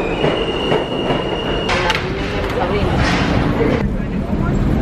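A subway train rumbles and screeches past close by.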